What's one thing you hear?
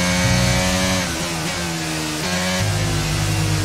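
A racing car engine drops in pitch quickly as it shifts down while slowing.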